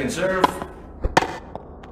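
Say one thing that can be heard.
A tennis racket strikes a ball on a serve.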